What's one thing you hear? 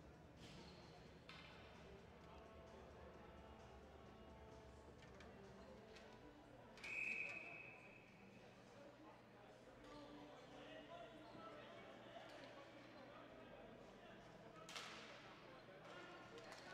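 Lacrosse sticks clack together.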